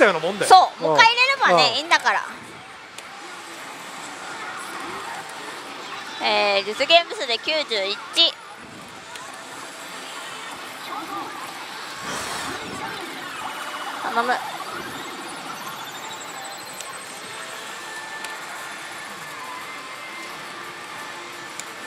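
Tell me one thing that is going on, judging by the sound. A slot machine plays electronic jingles and effects.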